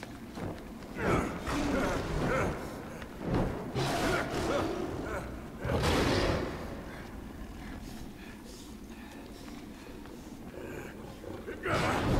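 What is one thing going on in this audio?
A big cat snarls and roars loudly.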